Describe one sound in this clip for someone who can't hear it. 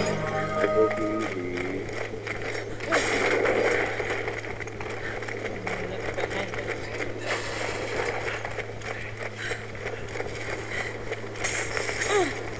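Footsteps tread steadily on the ground.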